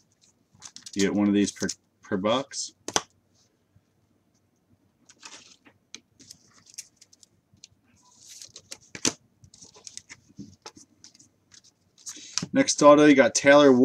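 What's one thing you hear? Plastic wrapping crinkles as a pack is torn open.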